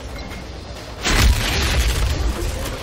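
A heavy blow lands with a loud crunching impact.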